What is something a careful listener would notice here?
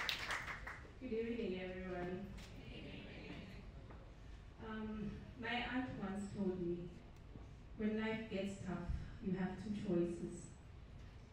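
A woman speaks into a microphone over loudspeakers, calmly and warmly.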